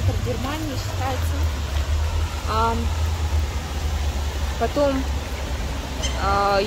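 A fountain splashes steadily into water.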